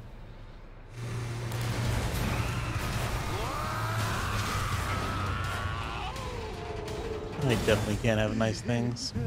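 A car engine roars loudly.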